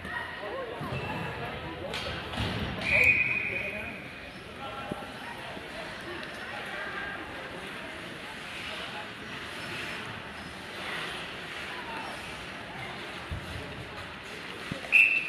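Skates scrape across ice in a large echoing arena.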